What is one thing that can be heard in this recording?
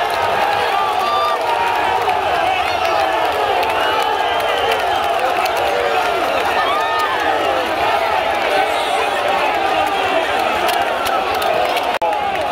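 A large stadium crowd cheers and chants in the open air.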